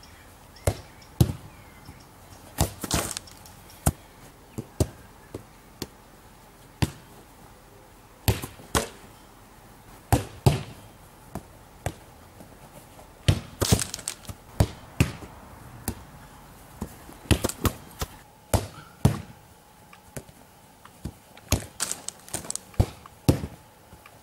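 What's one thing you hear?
A man kicks a football with sharp thuds, again and again.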